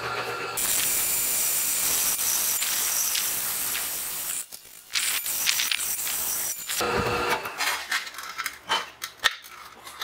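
A drill press whirs steadily as its bit grinds into metal.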